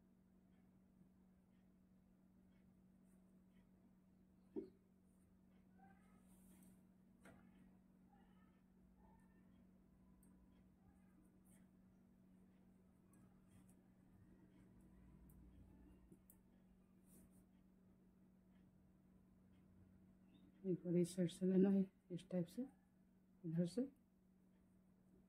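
Knitting needles click and tick softly against each other.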